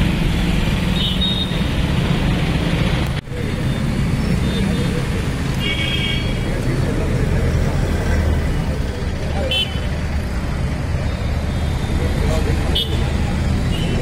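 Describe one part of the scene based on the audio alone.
Vehicle horns honk briefly now and then.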